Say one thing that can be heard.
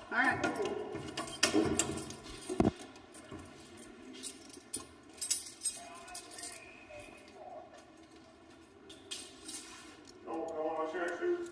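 Keys jingle and rattle on a ring.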